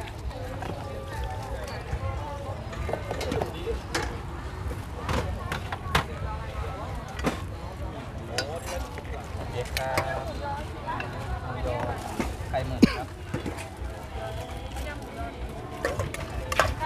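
A metal ladle clinks against a stainless steel bowl.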